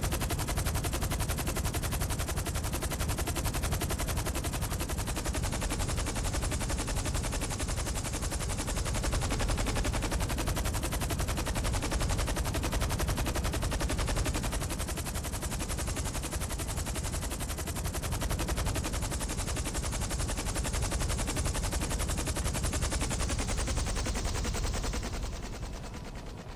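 A helicopter's rotor thumps loudly and steadily, then winds down and fades.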